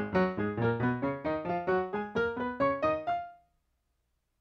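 A piano plays fast scales in octaves, rising up the keyboard.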